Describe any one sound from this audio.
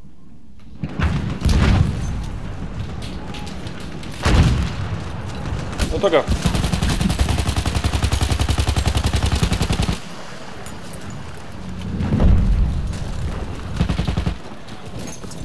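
Shells explode with heavy, rumbling booms.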